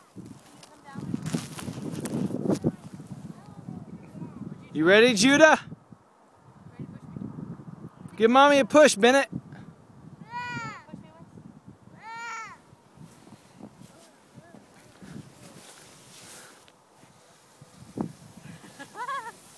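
Sleds slide over crunchy snow.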